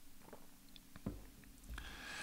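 A glass is set down on a table.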